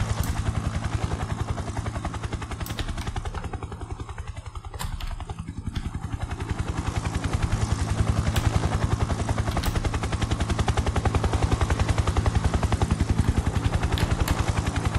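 An attack helicopter's rotor thumps in rapid, even beats.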